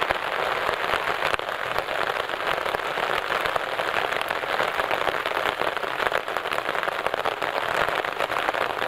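Raindrops patter on an umbrella.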